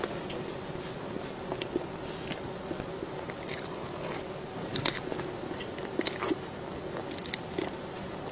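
A fork scrapes and taps against a soft cake.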